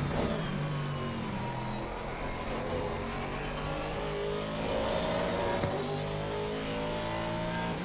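A racing car engine roars and whines through the gears.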